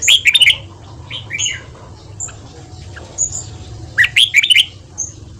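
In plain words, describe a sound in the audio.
A caged bird chirps in short, sharp bursts close by.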